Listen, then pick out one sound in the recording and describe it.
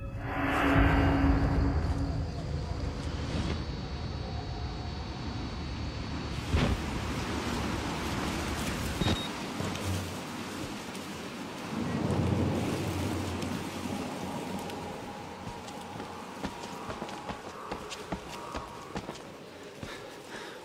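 Footsteps crunch on a stone path.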